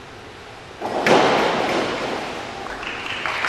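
A diver splashes into the water of an echoing pool.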